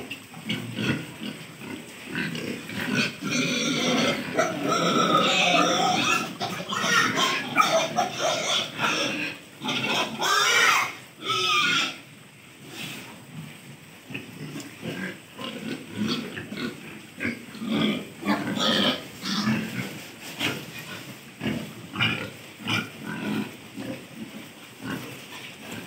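Pigs snuffle and chew as they root at feed on the ground.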